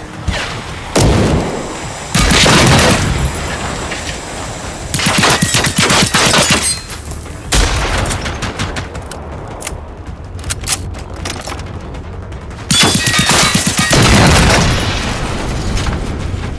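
A rifle fires rapid bursts of loud gunshots close by.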